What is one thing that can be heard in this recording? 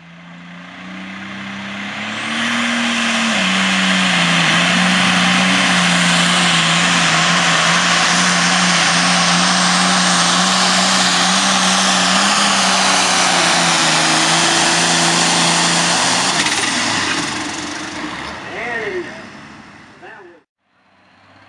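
A pulling tractor's engine roars at full throttle as it drags a weight sled.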